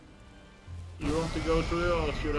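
A fiery magical blast bursts with a loud whoosh.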